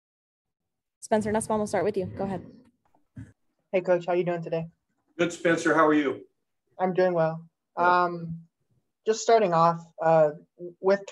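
An elderly man speaks calmly through a microphone, heard as on an online call.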